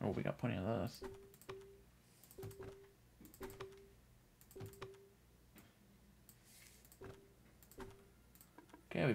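Short soft electronic beeps sound again and again.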